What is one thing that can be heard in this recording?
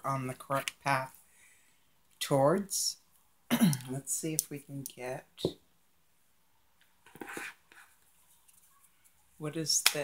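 Playing cards slide and tap softly on a table.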